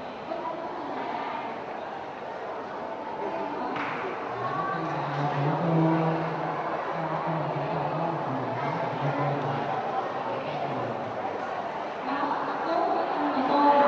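A young man speaks into a microphone over loudspeakers.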